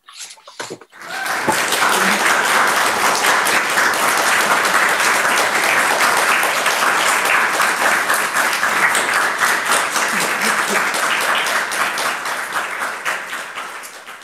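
Many people clap their hands over an online call.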